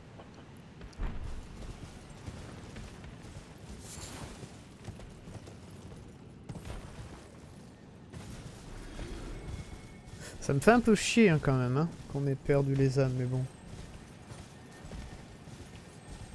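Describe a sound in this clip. A horse's hooves thud steadily on grass and rock.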